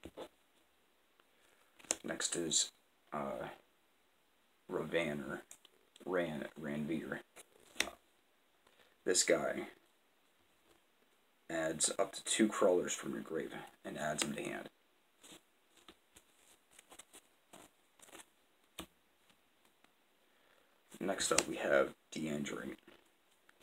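Playing cards are laid down softly on a cloth mat.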